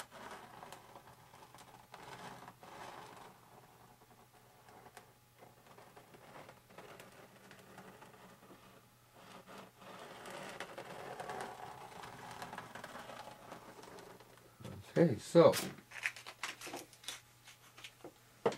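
A plastic sheet rustles and crinkles as it is peeled back.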